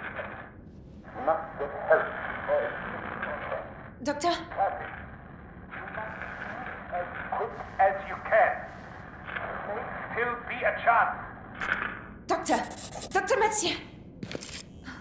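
A man speaks urgently over a crackling radio.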